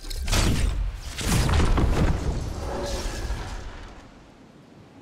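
A loud blast roars and rumbles.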